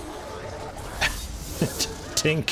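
A sword slashes and strikes flesh with sharp thuds.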